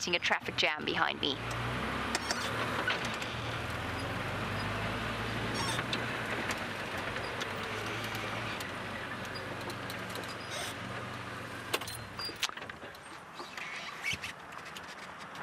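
Tyres crunch over a gravel track.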